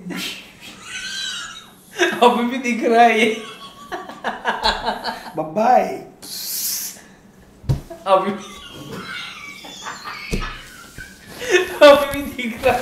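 A young man laughs loudly and heartily close by.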